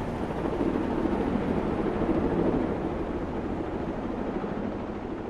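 Several helicopters thud low and steady as they fly close by.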